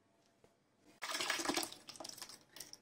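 Thick liquid pours and splashes into a metal pot.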